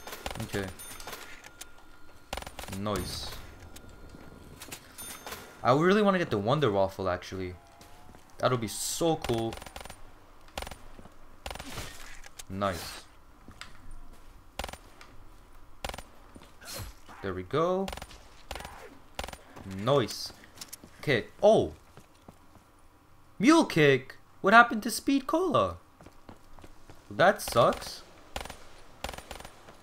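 A pistol fires sharp shots again and again.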